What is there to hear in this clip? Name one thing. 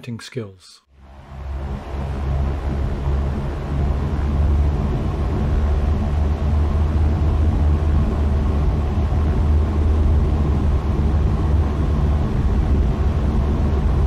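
A small propeller plane's engine drones steadily during a takeoff roll.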